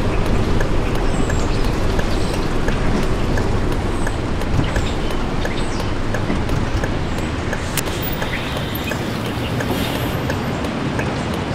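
A turn signal ticks at a steady, quick pace.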